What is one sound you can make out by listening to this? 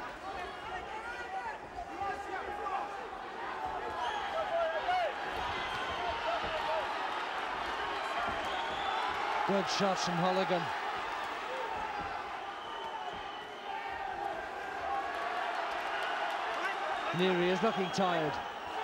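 A crowd cheers and murmurs in a large arena.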